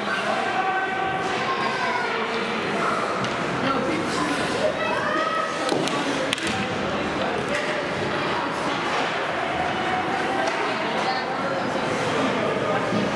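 Young players shout and call out in a large echoing arena.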